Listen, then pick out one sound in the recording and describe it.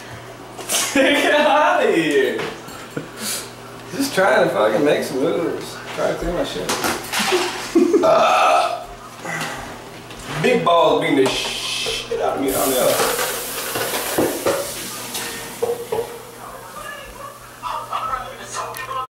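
Young men talk and laugh loudly up close in a small echoing room.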